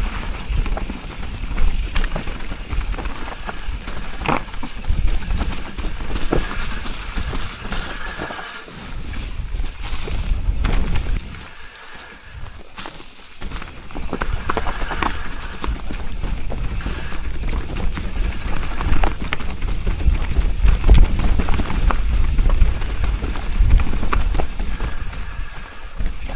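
A bicycle's frame and chain rattle and clatter over bumps.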